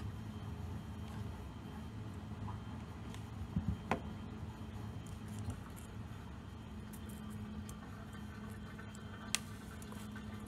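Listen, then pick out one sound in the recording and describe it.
Small clicks and taps come from handling a small ornament.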